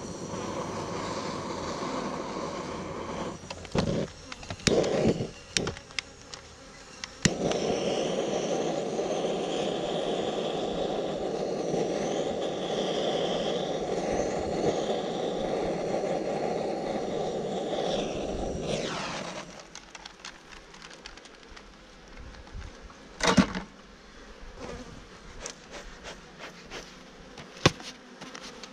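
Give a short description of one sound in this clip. Bees buzz around an open hive.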